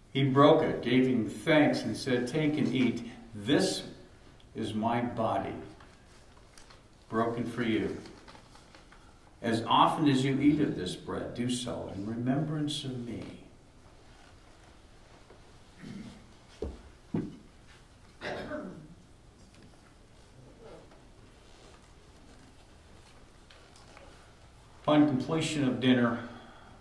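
An elderly man speaks calmly and slowly, as if leading a prayer.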